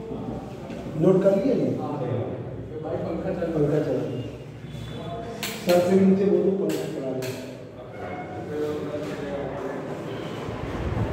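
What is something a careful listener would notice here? A man lectures calmly nearby.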